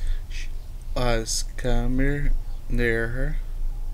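A man sings loudly and with strain close to a microphone.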